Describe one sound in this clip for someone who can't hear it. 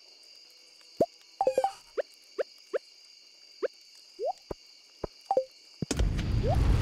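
Short pitched menu clicks pop in quick succession.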